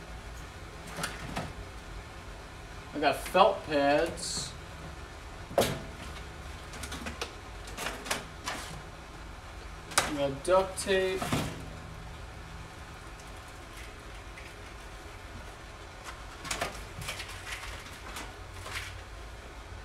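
Objects clatter and knock on a workbench.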